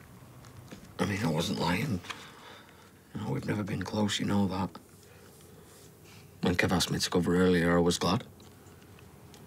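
A man speaks quietly and hesitantly, close by.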